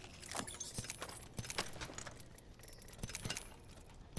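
Short clicks and clatters sound as items are picked up in a video game.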